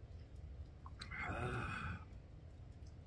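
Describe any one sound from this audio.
An elderly man speaks briefly and calmly nearby.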